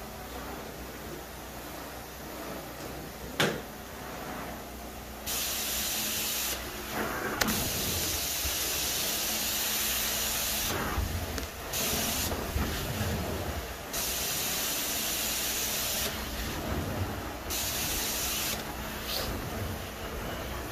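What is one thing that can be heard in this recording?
A vacuum motor drones steadily throughout.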